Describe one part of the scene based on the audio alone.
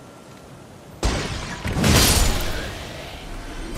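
A burst of loud magical impacts crackles and booms.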